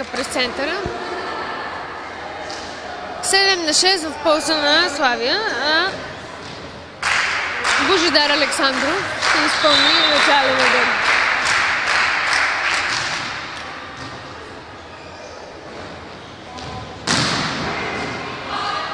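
A volleyball is struck with sharp smacks in an echoing hall.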